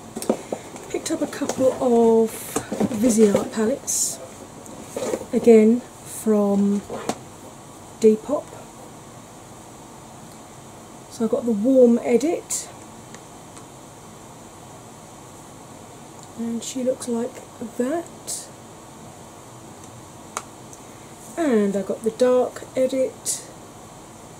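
A woman talks calmly and close by, in bursts with pauses.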